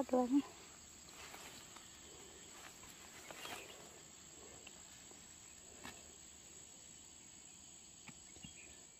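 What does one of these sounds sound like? Leaves and tall grass rustle as people push through them.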